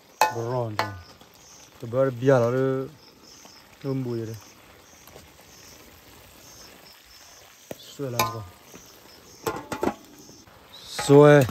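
A metal lid clanks onto a wok.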